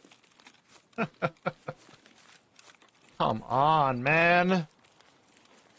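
A young man speaks briefly and expressively, close to a microphone.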